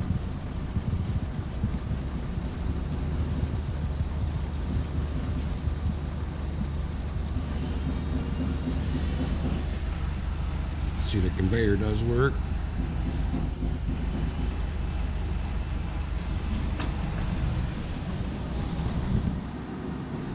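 A printing machine hums and rumbles steadily.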